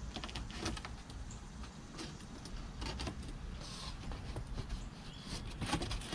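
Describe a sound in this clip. A knife slices through packing tape on a cardboard box.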